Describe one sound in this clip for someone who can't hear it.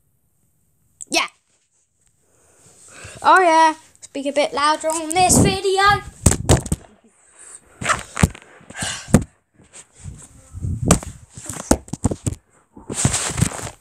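Hands rub and knock against the microphone.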